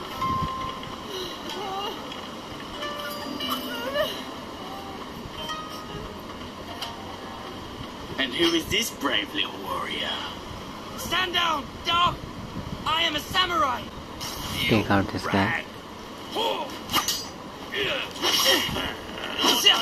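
Game sounds play through a small handheld speaker.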